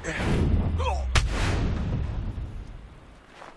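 A heavy blow thuds during a scuffle.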